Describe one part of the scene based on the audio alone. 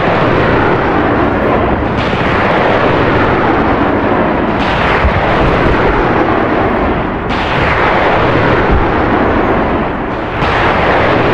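A jet engine roars overhead.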